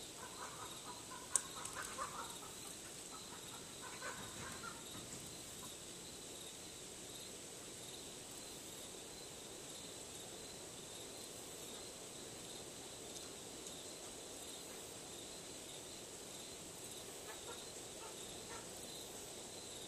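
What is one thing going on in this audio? Metal wind chimes ring softly now and then.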